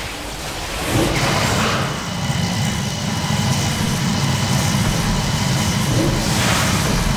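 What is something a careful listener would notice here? A magical spell whooshes and rumbles steadily.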